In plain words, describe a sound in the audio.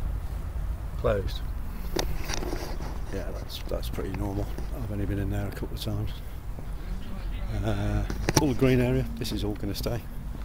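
A middle-aged man talks calmly close to the microphone.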